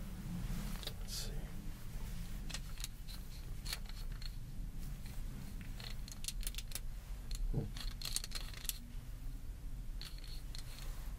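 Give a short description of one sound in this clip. Small metal objects click and tap in a man's hands.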